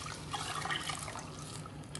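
Milk pours into a metal pot.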